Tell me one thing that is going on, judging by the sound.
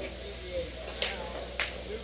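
A cue strikes a ball with a sharp crack.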